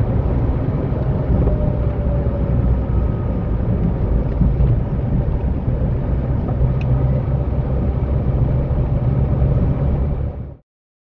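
Tyres roll on asphalt with a steady road noise.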